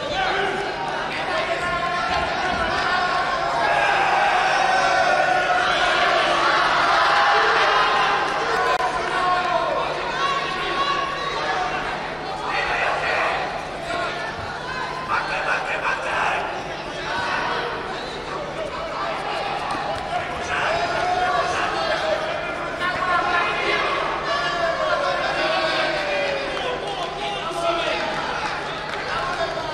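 Spectators shout and call out in a large arena.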